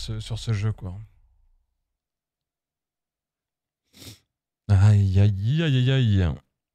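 A man talks close to a microphone, with animation.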